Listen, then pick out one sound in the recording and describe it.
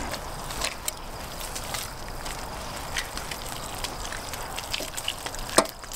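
A knife cuts through soft cooked meat.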